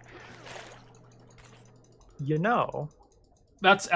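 A spear stabs into flesh with wet thuds.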